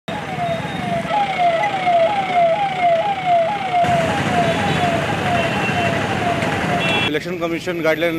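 A police siren wails close by in quick rising sweeps.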